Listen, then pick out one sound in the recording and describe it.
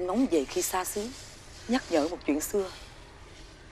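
A woman speaks calmly nearby.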